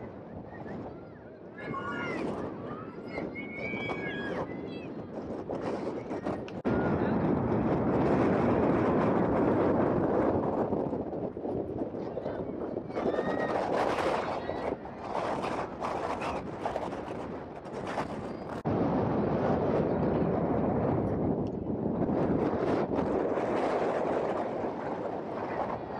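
Wind blusters across the microphone outdoors.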